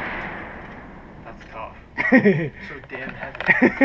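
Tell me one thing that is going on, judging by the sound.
A rifle bolt clicks as it is worked.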